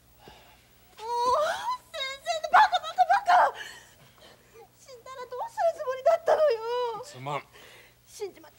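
A young woman cries out with emotion.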